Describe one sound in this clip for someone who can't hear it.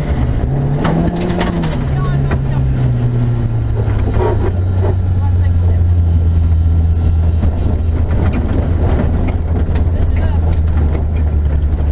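A young man reads out notes quickly over the engine.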